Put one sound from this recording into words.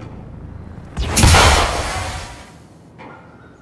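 A metal canister bursts with a loud hissing blast.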